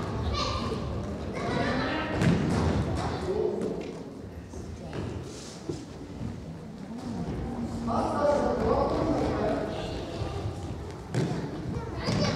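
A ball thuds on a wooden floor.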